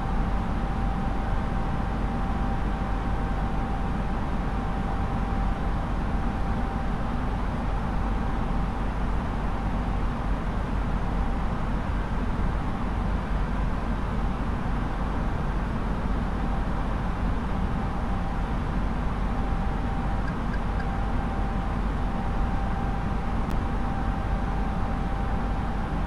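Jet engines and rushing air roar steadily in a cockpit in flight.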